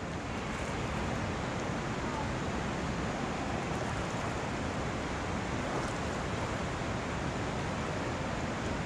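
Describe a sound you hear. Water rushes steadily.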